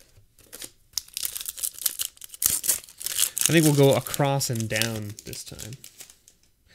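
Playing cards rustle and slide against each other in hands.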